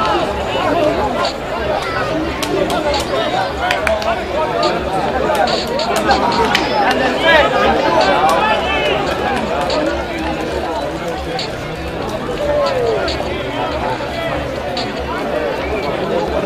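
A small crowd of spectators chatters and shouts outdoors.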